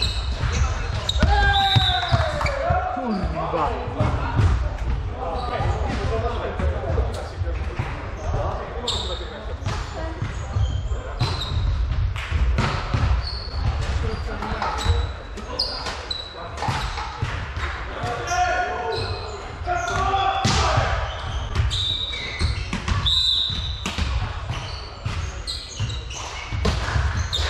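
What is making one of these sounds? Men shout and call out to one another in a large echoing hall.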